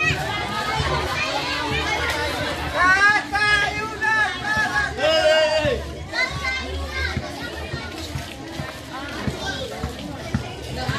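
A crowd of people talk and call out loudly nearby, outdoors.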